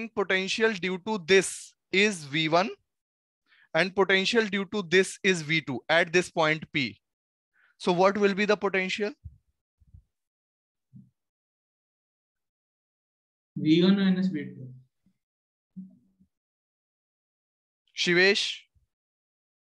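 A young man speaks calmly and clearly into a headset microphone, pausing now and then.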